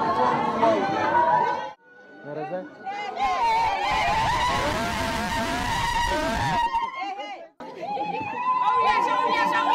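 A group of women sing loudly together.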